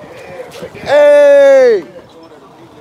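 A man shouts out loudly.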